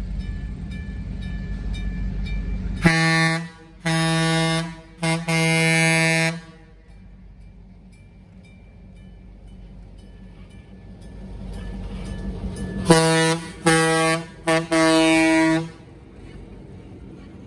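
A diesel locomotive rumbles as it approaches and passes close by.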